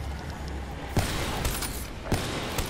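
A gun fires in short, sharp bangs.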